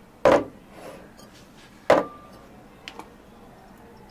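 Glass jars clink as they are set on a counter.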